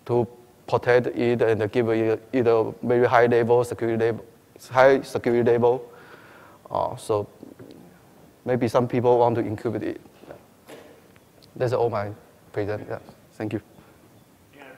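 A man speaks steadily into a microphone in a large hall.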